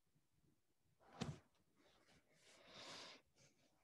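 Clothing rustles close to a microphone.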